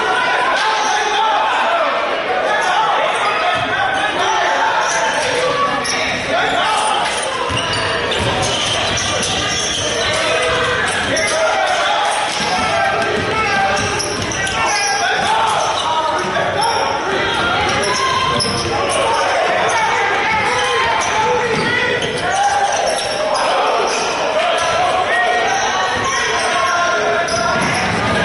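Spectators chatter and call out in an echoing gym.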